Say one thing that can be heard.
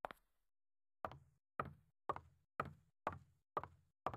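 High heels click on a hard floor.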